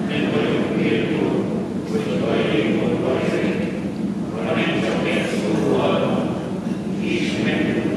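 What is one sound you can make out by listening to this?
A congregation sings together, echoing through a large hall.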